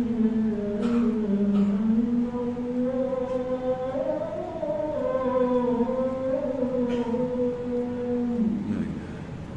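An elderly man chants slowly and melodically into a microphone.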